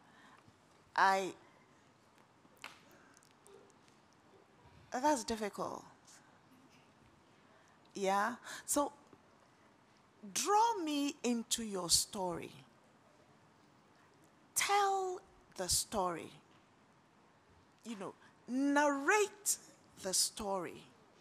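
A young woman speaks clearly into a microphone in short phrases, with pauses between them.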